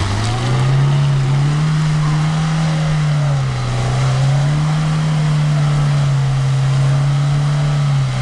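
A car engine revs hard and strains.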